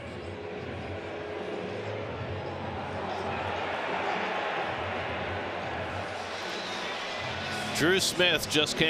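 A large crowd murmurs in the background.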